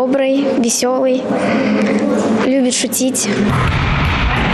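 A young girl speaks calmly and cheerfully into a microphone nearby.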